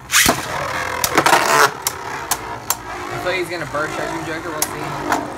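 Two spinning tops collide with sharp clacks.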